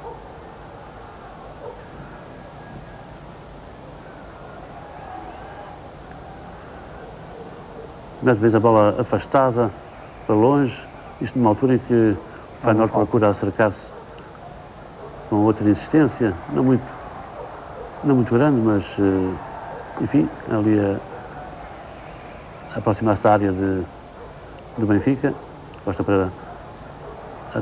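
A large crowd murmurs faintly in the distance.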